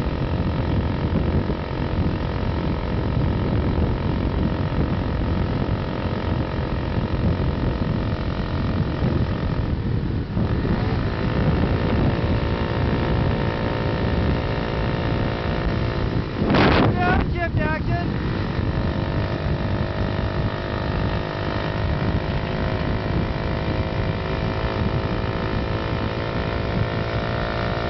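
Wind rushes loudly past the rider outdoors.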